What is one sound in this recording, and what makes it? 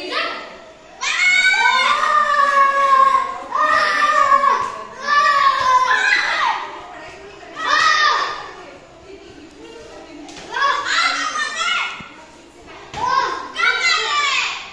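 Children shout loudly.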